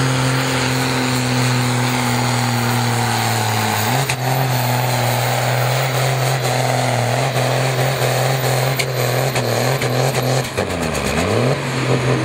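Large tyres churn and spray dirt.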